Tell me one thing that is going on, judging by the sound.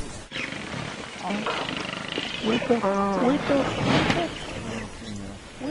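Buffalo bellow and low loudly.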